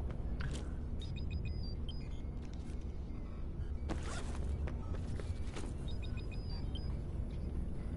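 A short electronic chime beeps several times.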